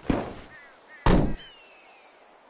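A heavy vehicle door thuds shut.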